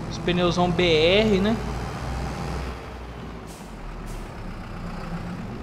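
A tractor engine idles and rumbles steadily.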